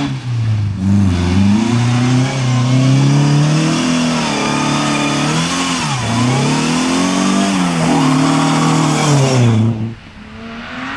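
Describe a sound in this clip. A rally car engine revs hard and roars past, changing gears.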